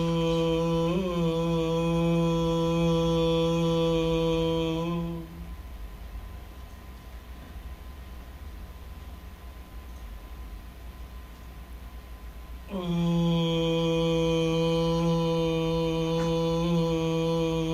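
A man sings long, steady, low held notes close by.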